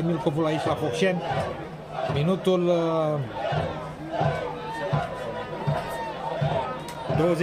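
A crowd of spectators chants and sings loudly outdoors.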